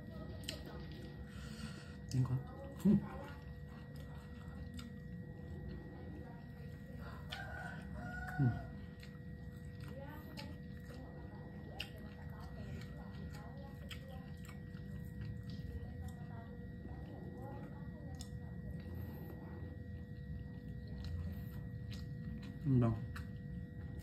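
A young man chews food noisily close by.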